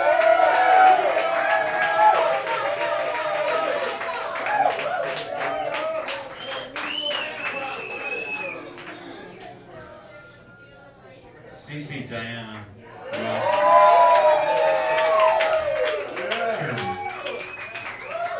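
A young woman sings loudly through a microphone.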